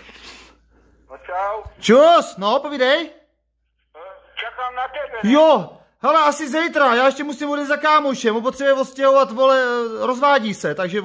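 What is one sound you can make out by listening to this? A man speaks close up in a strained, agitated voice.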